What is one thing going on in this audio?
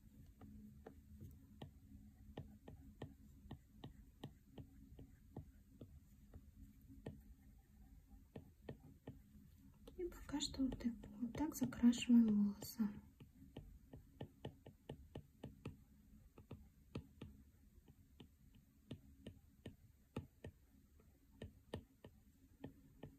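A stylus taps and scratches on a glass tablet surface.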